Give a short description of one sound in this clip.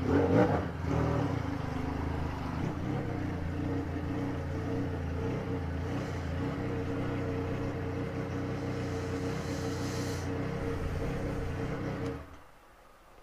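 A three-cylinder sport-touring motorcycle idles and rolls slowly, then is switched off.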